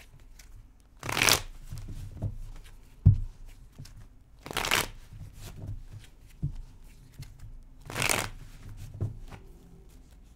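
Cards shuffle and riffle in a woman's hands.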